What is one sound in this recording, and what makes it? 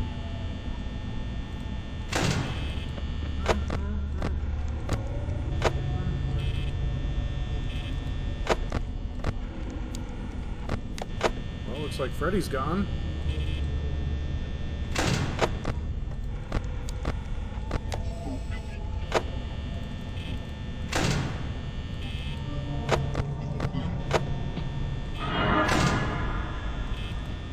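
An electric desk fan whirs.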